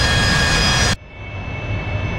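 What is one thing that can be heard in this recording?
Inside a cockpit, a jet engine hums in a muffled way.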